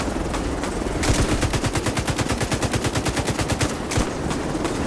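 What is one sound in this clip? A helicopter's rotor thumps rapidly overhead.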